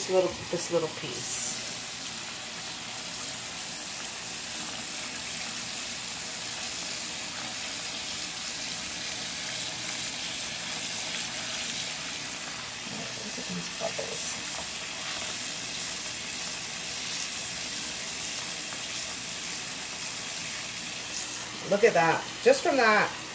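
Tap water runs steadily into a sink full of water.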